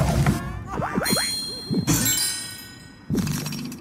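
Chimes ring out as a reward pops up.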